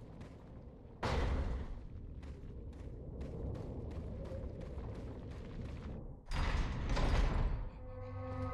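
A heavy wooden door scrapes open.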